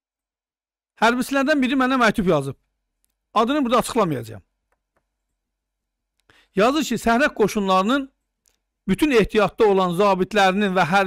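A middle-aged man speaks calmly and deliberately into a close microphone, with pauses.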